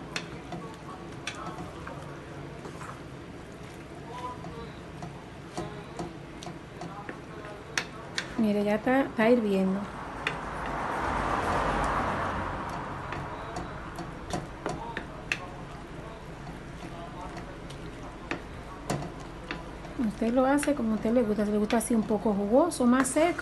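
A wooden spoon scrapes and taps against a metal pan as pasta is stirred.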